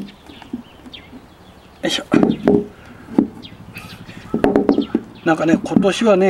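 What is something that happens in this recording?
Knobby roots knock and scrape on a wooden board.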